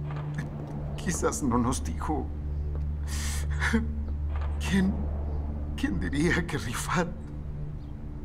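A middle-aged man speaks in a shaky, upset voice close by.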